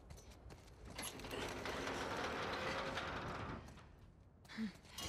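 A heavy door scrapes open.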